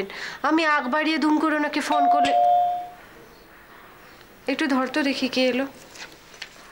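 A woman speaks into a phone close by, tense and urgent.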